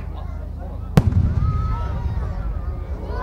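A firework shell bursts with a loud boom that echoes.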